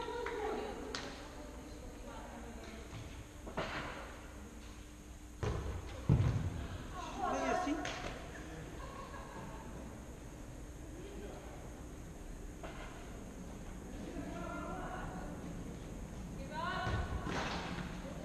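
A ball thuds against the floor and walls of an echoing hall.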